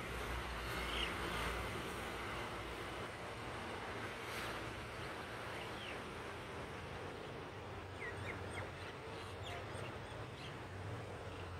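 A bird gives short, high chirps now and then.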